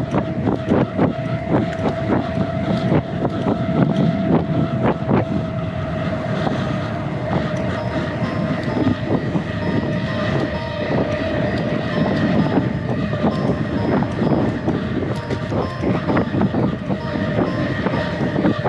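A bicycle's bags and frame rattle over bumps.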